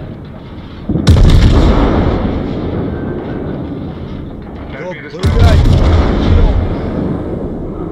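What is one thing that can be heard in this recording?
Shells explode and splash into the water with loud rumbling crashes.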